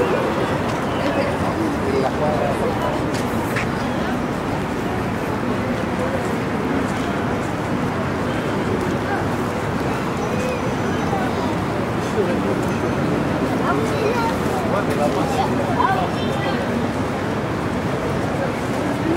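People walking past chatter faintly in the crowd.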